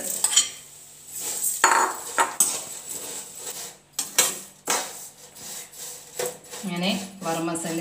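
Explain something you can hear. Vermicelli crackles as a spoon stirs it in a hot pan.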